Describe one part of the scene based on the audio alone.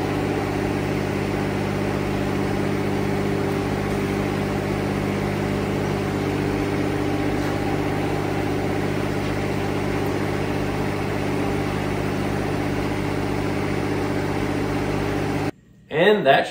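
A tractor engine idles steadily with a low hum.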